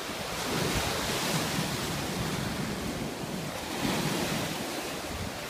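Sea waves break and wash in close by, rising and falling in steady surges.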